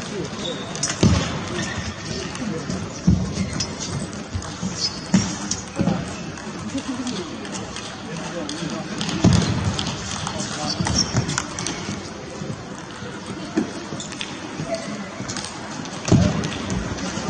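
A table tennis ball clicks against paddles and the table in a rally.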